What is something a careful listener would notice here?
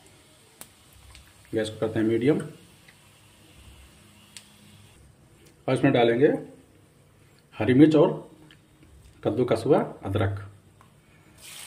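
Oil sizzles softly in a pan.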